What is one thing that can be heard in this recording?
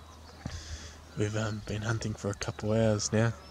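A man speaks quietly and calmly close by.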